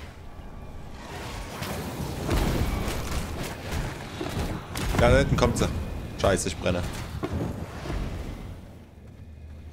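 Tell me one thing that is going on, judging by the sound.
Fiery explosions boom and crackle.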